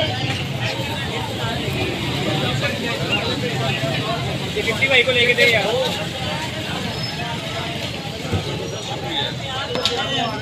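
A metal spatula scrapes and taps on a griddle.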